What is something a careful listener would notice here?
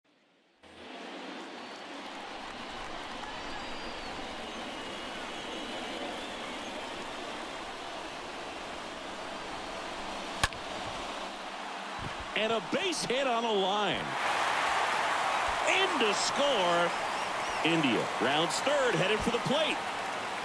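A stadium crowd murmurs steadily, then cheers loudly.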